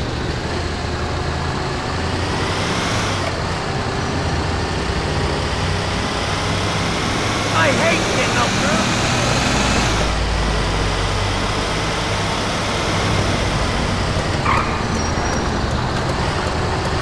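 A heavy truck engine drones steadily as it drives along.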